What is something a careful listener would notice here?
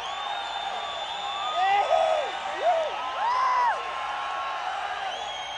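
An electric guitar plays bending, wailing notes.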